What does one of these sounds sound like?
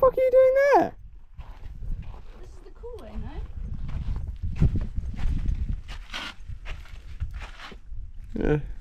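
Feet scrape and shuffle on rock.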